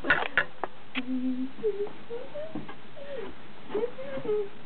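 A young woman hums a tune.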